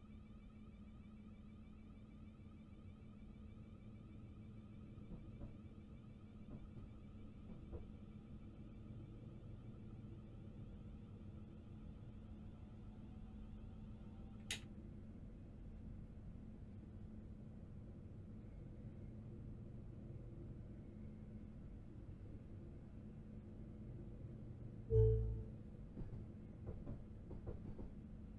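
A train's engine hums steadily as it runs along the track.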